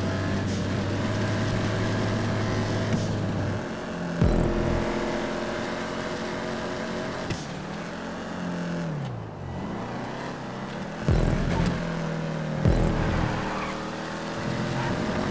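A car engine roars steadily, rising and falling in pitch as the car speeds and shifts gears.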